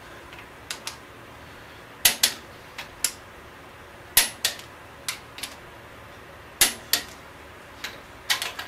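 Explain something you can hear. A wrench clicks sharply on metal, again and again in short pairs.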